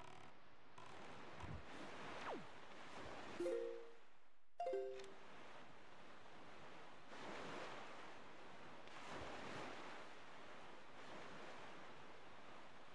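Wind and water rush steadily around a small sailing boat, swelling now and then.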